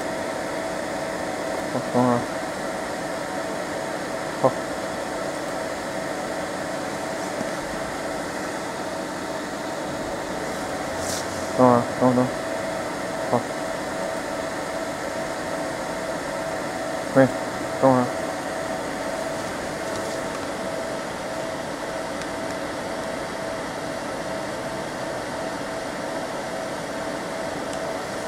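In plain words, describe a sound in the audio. A fiber laser marking machine hums steadily.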